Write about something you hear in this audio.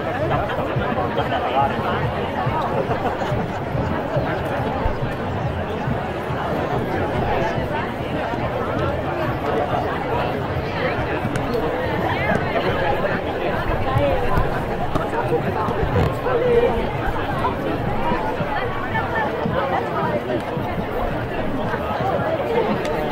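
A large crowd of men and women chatters all around outdoors.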